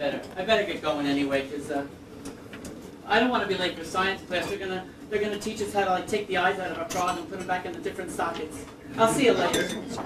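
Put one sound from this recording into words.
A man speaks loudly on a stage.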